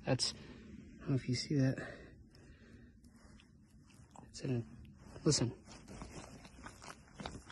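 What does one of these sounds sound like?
A hand rustles through thick fur.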